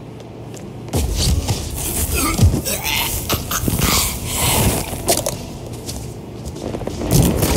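Bodies scuffle and thud on a wooden floor.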